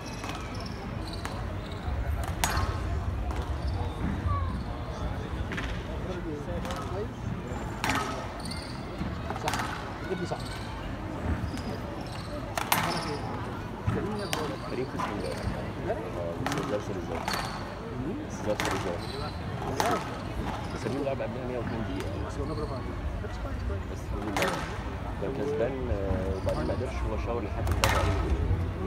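A squash ball smacks sharply against the walls and rackets in a quick rally.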